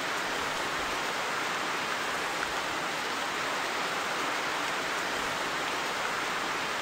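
Rain falls steadily through trees.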